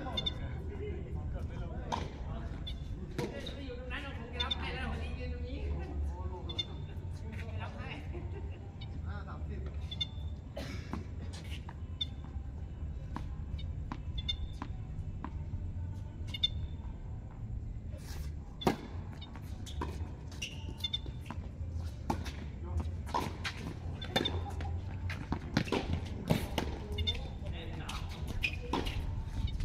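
Tennis rackets hit a ball back and forth outdoors.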